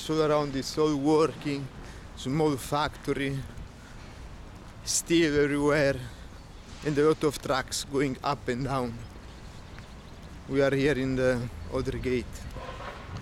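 A man talks calmly, close to the microphone, outdoors.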